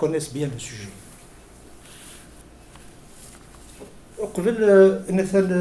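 A middle-aged man speaks calmly into a microphone close by, with pauses.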